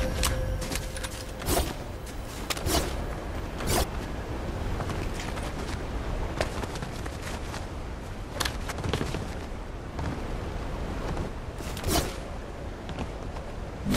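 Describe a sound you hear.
Footsteps patter quickly over grass and wooden boards.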